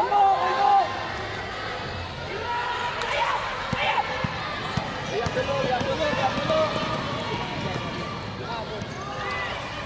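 Young players shout in a large echoing hall.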